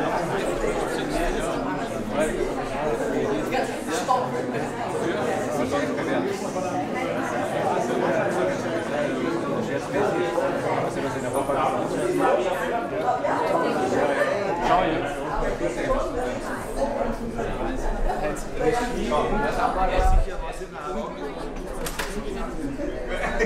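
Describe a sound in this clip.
A crowd of men and women chat in a room with some echo.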